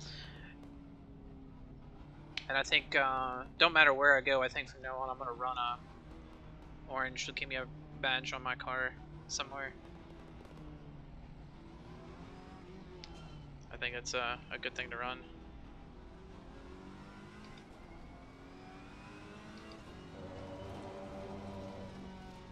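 A race car engine drones steadily and revs up through the gears.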